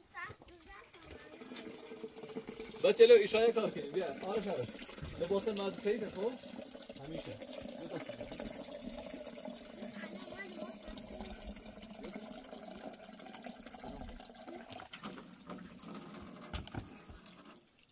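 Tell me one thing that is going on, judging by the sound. Water splashes and trickles into a metal basin.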